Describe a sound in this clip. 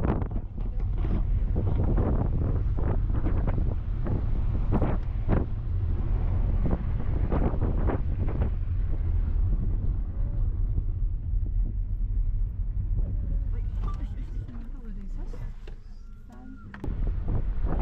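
A car engine hums and tyres rumble on the road from inside the car.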